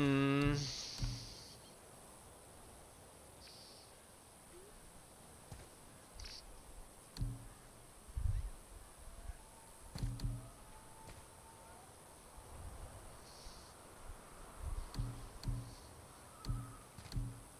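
Soft menu clicks and thumps sound as selections change.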